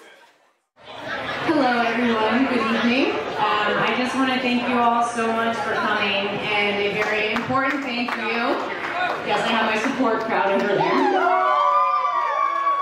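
A young woman speaks steadily into a microphone, heard through a loudspeaker.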